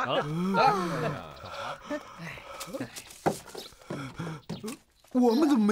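A man cries out loudly with a wailing voice nearby.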